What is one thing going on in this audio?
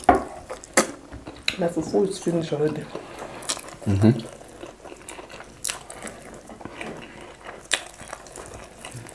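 A man and a woman chew and smack their lips loudly, close by.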